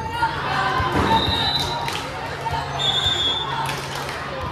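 Sneakers squeak on a wooden gym floor.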